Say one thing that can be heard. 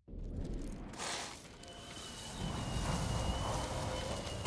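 A sword slides out of its sheath with a metallic ring.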